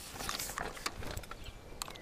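A fishing reel clicks and whirs as it is wound.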